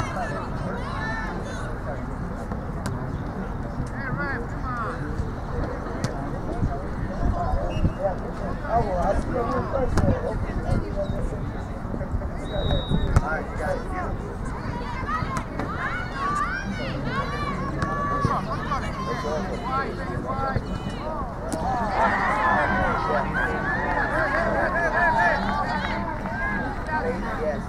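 Spectators on the sidelines shout and cheer outdoors.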